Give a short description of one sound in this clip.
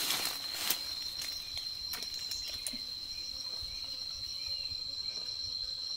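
Leaves rustle as a fruit is pulled from a tree branch.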